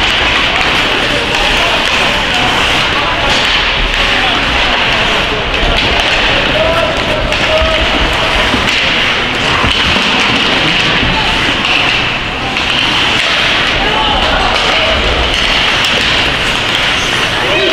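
Ice skates scrape and carve across ice in an echoing indoor arena.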